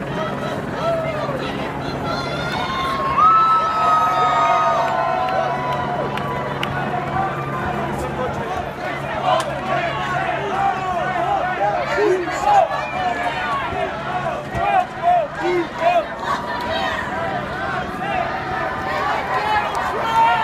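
A large crowd of protesters chants and shouts outdoors.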